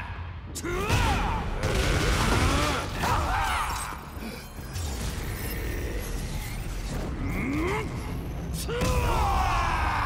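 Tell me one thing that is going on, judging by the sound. Punches and kicks land with heavy thuds and whooshes.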